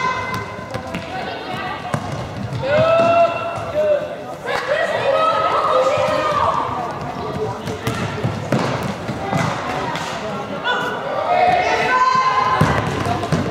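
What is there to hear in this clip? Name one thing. A ball thuds off a foot and bounces on a hard floor.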